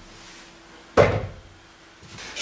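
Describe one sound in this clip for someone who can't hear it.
A kettlebell thuds down onto a wooden bench.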